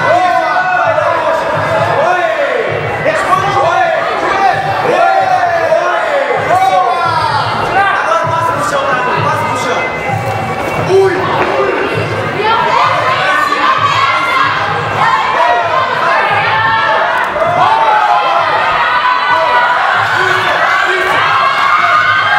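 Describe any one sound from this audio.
Spectators shout and cheer around a ring.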